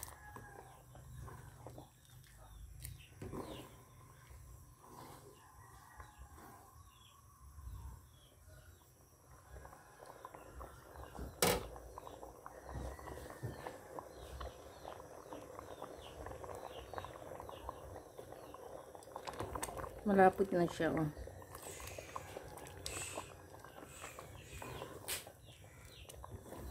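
Liquid bubbles and boils in a pot.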